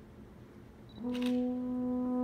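A brass quintet begins playing a sustained chord.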